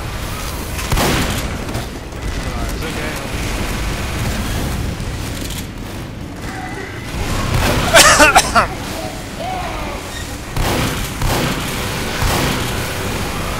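Shotgun blasts go off in quick bursts.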